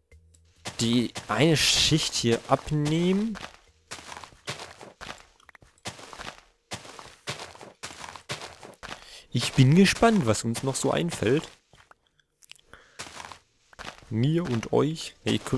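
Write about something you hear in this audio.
A shovel digs into soil with repeated crunching thuds.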